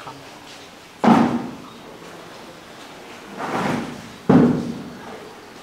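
Plastic buckets thud and clunk on concrete.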